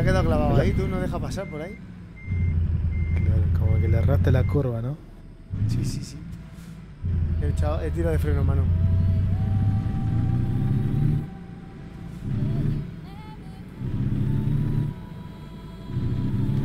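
A truck engine rumbles deeply, surging and easing off in bursts.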